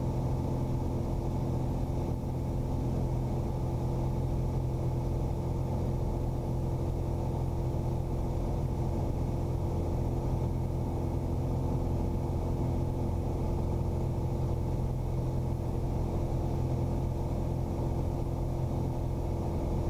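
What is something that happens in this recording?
An aircraft engine drones steadily and loudly.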